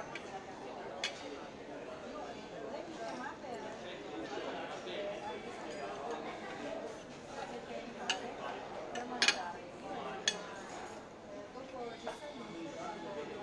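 A knife and fork scrape and clink on a ceramic plate.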